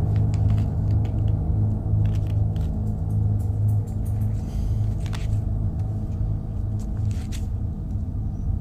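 A cat purrs loudly close by.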